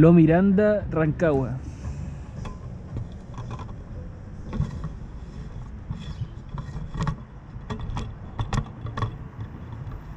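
A car's convertible roof whirs as it opens.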